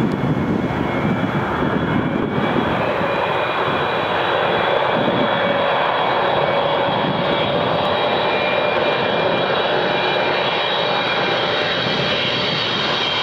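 A jet airliner's engines roar and whine steadily as it approaches overhead.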